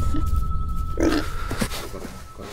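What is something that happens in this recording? A wild boar grunts and snorts close by.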